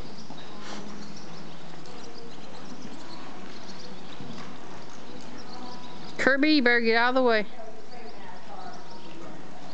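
A horse walks on soft dirt, its hooves thudding dully.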